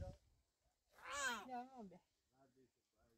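A young child babbles in a high voice.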